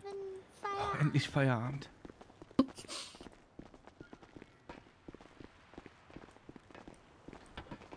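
Footsteps walk on hard ground.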